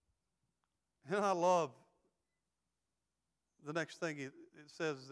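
A middle-aged man speaks slowly and emphatically through a microphone, with pauses.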